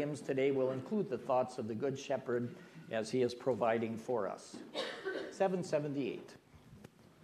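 An elderly man reads aloud calmly through a microphone in an echoing hall.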